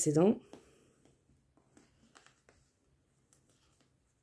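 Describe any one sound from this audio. Paper rustles and taps softly under fingers.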